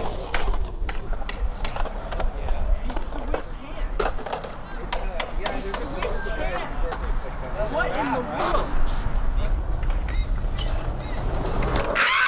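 Skateboards clack and snap against concrete.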